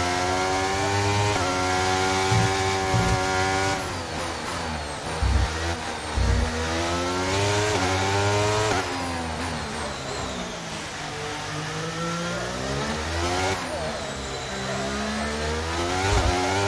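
A racing car engine screams at high revs, rising and falling in pitch with each gear change.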